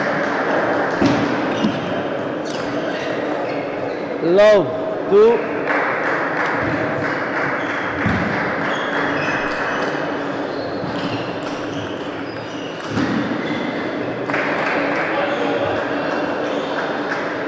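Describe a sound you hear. A table tennis ball clicks back and forth off paddles and the table.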